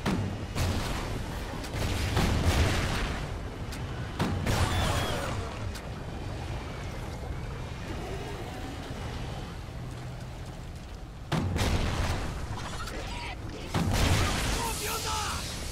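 Strong wind howls steadily.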